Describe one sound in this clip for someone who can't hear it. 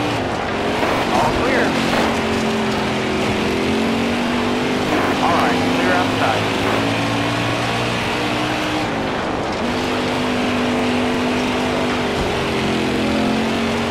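Tyres skid and scrape on loose dirt.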